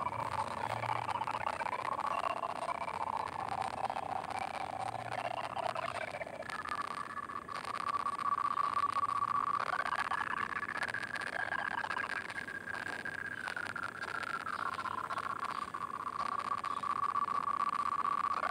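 Cheerful electronic game music plays with a bouncy melody.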